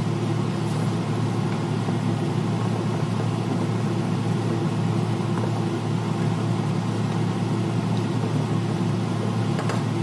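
A wooden spatula stirs and scrapes food in a pan.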